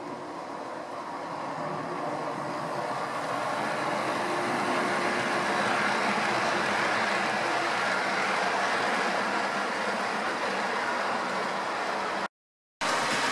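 A model train rumbles and clatters along the track, growing louder as it passes close by.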